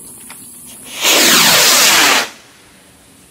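A firework rocket whistles as it climbs.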